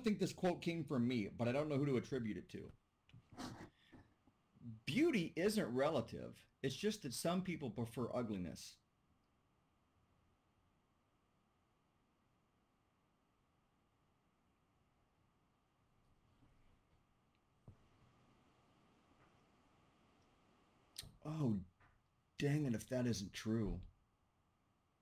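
A middle-aged man speaks calmly and thoughtfully over an online call, with pauses.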